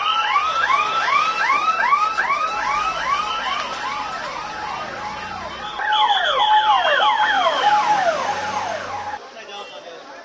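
An ambulance siren wails rapidly up and down nearby.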